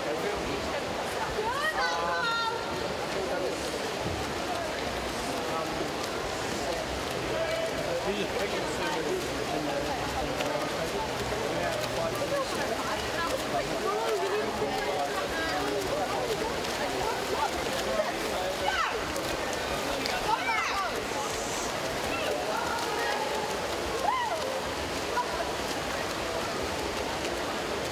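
A crowd cheers and shouts steadily in a large echoing hall.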